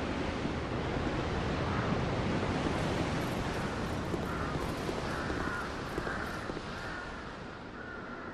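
Wind roars steadily outdoors.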